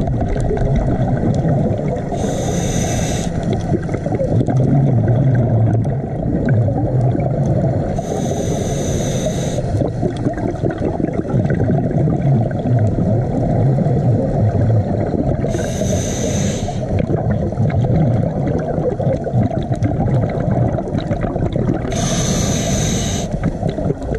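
A muffled underwater rumble goes on steadily.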